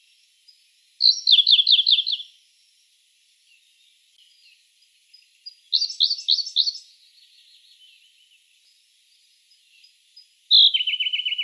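A small bird sings short bursts of bright, quick trilling notes.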